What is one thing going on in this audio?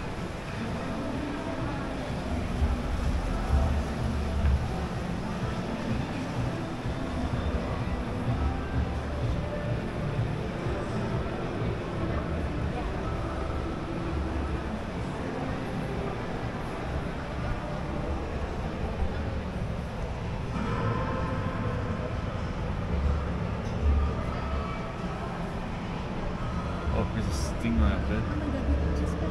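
A crowd murmurs and echoes in a large indoor hall.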